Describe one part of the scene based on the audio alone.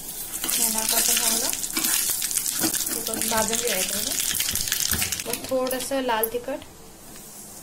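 Hot oil sizzles and crackles in a small pan.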